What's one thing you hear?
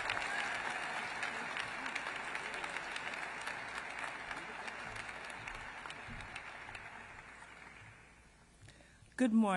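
An audience applauds and the applause fades away.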